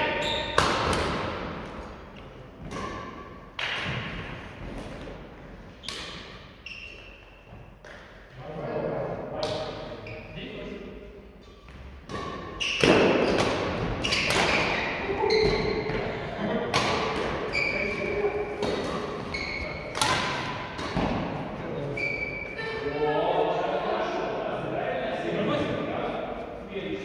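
Shuttlecocks are hit sharply with rackets, echoing in a large hall.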